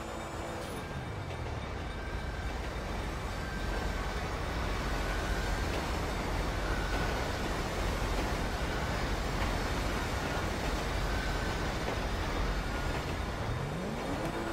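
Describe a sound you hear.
A freight train rumbles past nearby.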